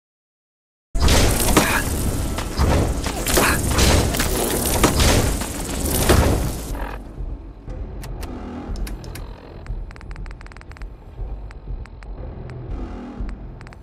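A giant insect buzzes and screeches.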